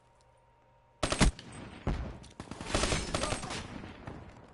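A rifle fires loud rapid bursts of gunshots.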